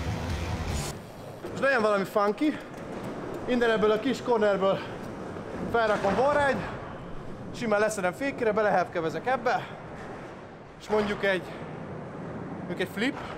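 A young man talks with animation close by, in an echoing hall.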